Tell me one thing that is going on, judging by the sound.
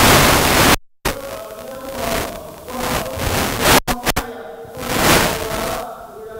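A middle-aged man speaks calmly and formally into a microphone, heard through loudspeakers.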